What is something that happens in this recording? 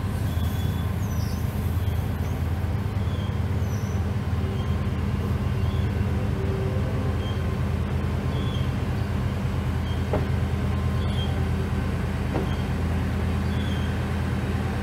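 Railway coaches roll slowly along the track.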